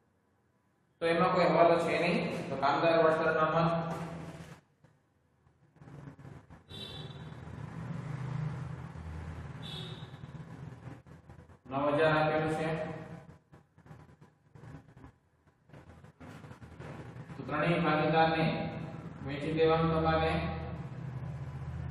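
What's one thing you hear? A man speaks calmly and clearly, close by.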